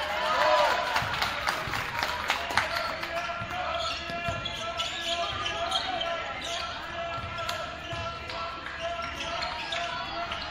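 A basketball bounces repeatedly on the floor.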